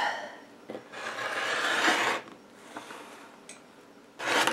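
A rotary cutter rolls and slices through fabric.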